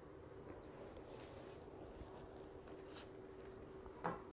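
Playing cards slide and shuffle together on a cloth surface.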